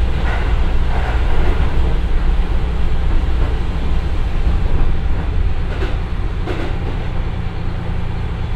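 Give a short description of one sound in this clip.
Train wheels clatter and rumble over the rails.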